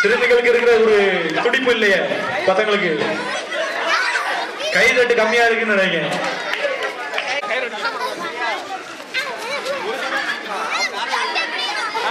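A group of children shout and chant together loudly outdoors.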